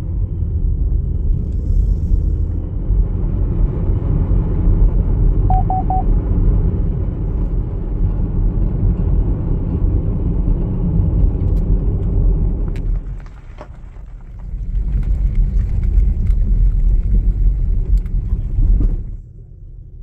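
A car's engine and tyres rumble steadily on the road.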